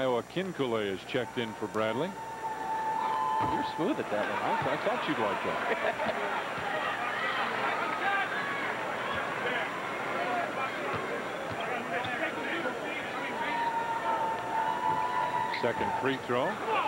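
A large crowd murmurs and chatters in a big echoing arena.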